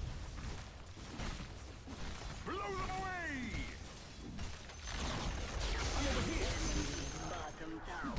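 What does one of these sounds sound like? Battle sound effects from a video game clash and boom.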